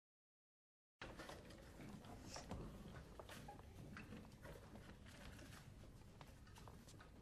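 A guitar ensemble plays plucked notes together in a hall.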